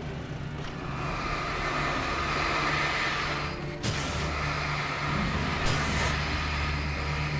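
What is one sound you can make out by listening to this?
A ghostly rushing whoosh swells and churns.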